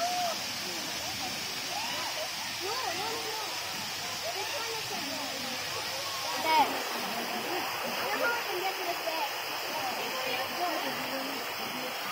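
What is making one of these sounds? Water pours down a tall waterfall with a steady rushing roar.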